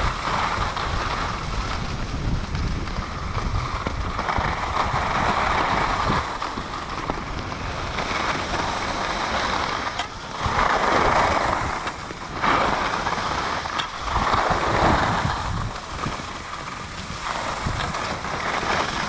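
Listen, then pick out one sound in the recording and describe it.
Skis scrape and hiss over packed snow in swelling bursts.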